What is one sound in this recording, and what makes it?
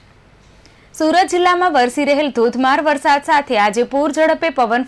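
A woman reads out the news clearly through a microphone.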